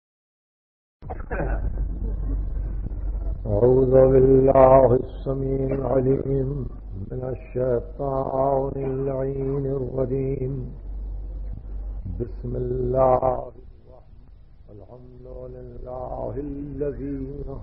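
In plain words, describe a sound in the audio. An elderly man delivers a speech with animation, heard through an old, muffled recording.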